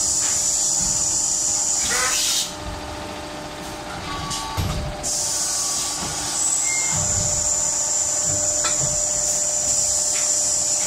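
Industrial machinery hums and hisses loudly and steadily.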